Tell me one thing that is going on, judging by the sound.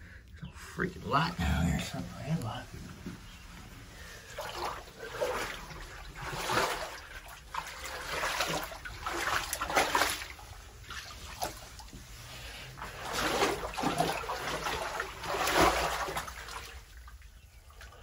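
Water sloshes and splashes with each step of someone wading through it.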